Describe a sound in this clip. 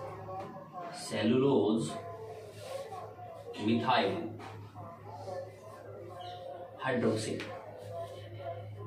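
A man speaks calmly and steadily, close by.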